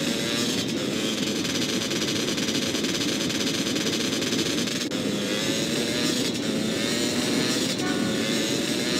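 A motorcycle engine roars steadily.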